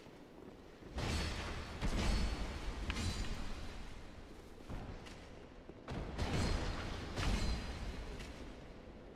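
Swords clash and strike in quick bursts.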